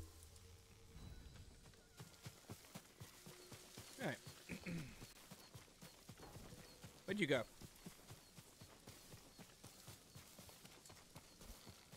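Footsteps rustle quickly through grass and leaves.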